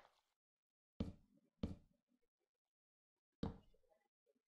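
Blocks thud softly as they are placed.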